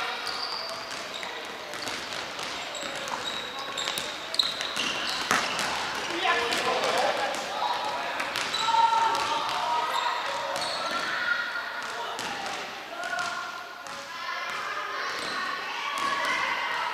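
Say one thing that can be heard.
Sports shoes squeak sharply on a wooden floor in a large echoing hall.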